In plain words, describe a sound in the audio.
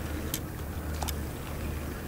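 Bait splashes into water.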